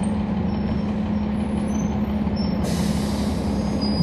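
A bus engine idles with a low hum nearby.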